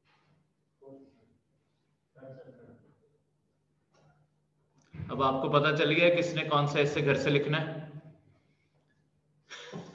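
A man speaks calmly into a microphone, in pauses.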